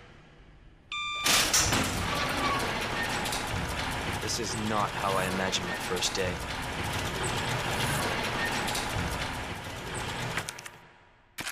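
A metal shutter rattles loudly as it rolls up.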